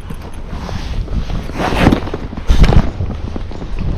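Clothing and saddle leather rustle and thump close by.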